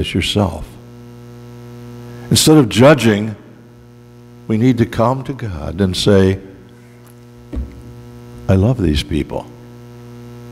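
An elderly man speaks calmly through a microphone in an echoing hall, pausing between phrases.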